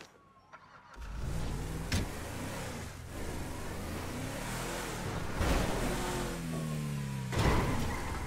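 A truck engine rumbles and revs as it drives.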